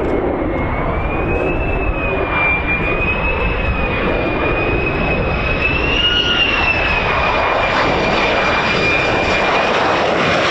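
A jet engine whines at a high, wavering pitch.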